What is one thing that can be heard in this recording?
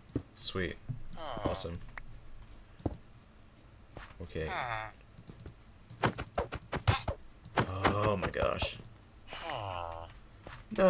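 A cartoonish creature grunts in short nasal mumbles.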